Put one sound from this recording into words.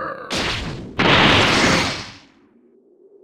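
A rushing whoosh sweeps past and fades.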